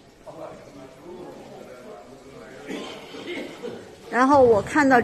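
Several people talk quietly in the background.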